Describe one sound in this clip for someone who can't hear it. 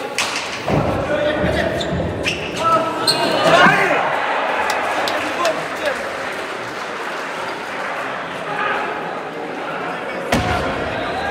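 A ball smacks hard against a wall in a large echoing hall.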